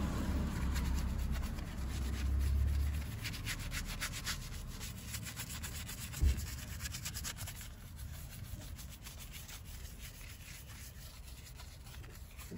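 A brush scrubs a soapy tyre with quick, swishing strokes.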